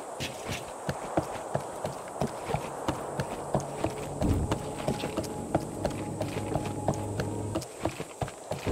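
Footsteps tap quickly on wooden planks.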